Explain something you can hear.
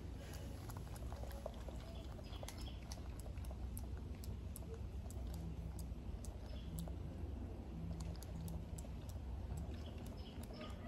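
A monkey's fingers rustle and pick through a man's hair close up.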